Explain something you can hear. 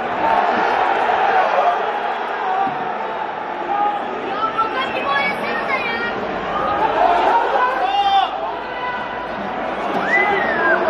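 A small crowd murmurs and cheers steadily in an open stadium.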